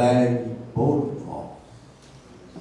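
A man chants into a microphone in a slow, sung tone.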